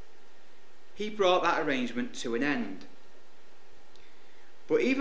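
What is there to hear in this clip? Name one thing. A man speaks calmly into a microphone, reading out.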